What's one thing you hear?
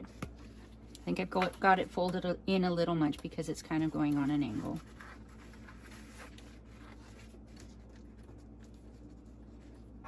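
Fabric rustles softly as it is handled.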